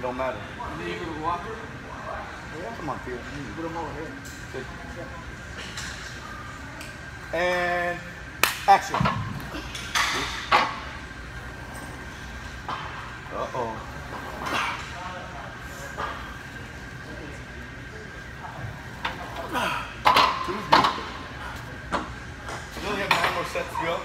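A man strains and grunts under a heavy leg press.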